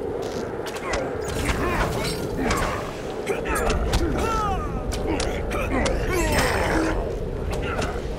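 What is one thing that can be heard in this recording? A creature snarls and grunts in pain.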